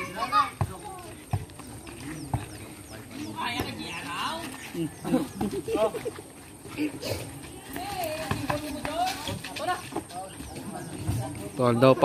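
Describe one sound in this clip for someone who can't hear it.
Young men shout and chatter outdoors.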